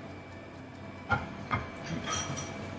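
Ceramic plates clink and clatter.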